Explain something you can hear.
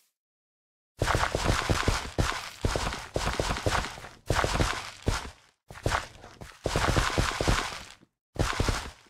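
A hoe scrapes and thuds into dirt again and again.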